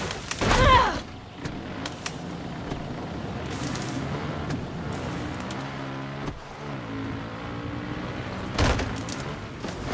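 A motorbike engine hums steadily and revs up and down.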